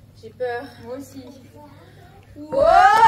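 Two girls talk with animation.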